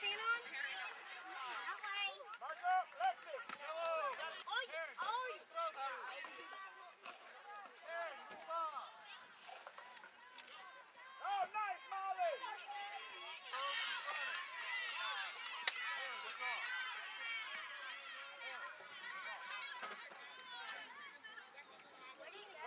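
Spectators call out and cheer from the sidelines of an open field.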